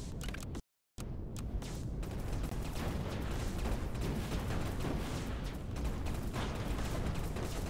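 Laser guns fire rapidly in a battle.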